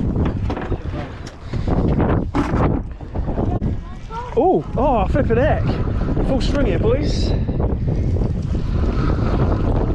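Water splashes and sloshes against a small boat's hull.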